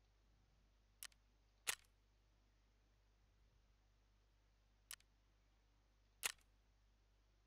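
Short menu clicks sound as pages change.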